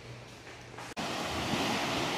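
Small waves wash onto a beach.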